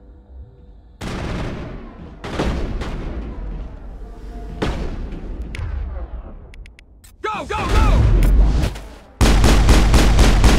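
Guns fire in loud bursts with booming echoes.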